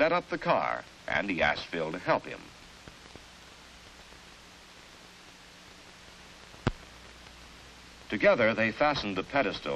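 A man speaks loudly in an old, thin-sounding recording.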